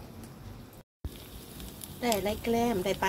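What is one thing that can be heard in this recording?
Hot oil sizzles as a fish fries.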